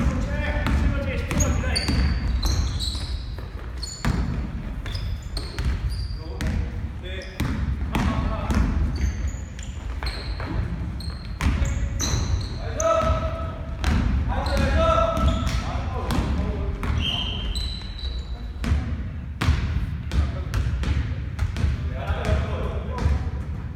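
Basketball shoes squeak sharply on a wooden floor in a large echoing hall.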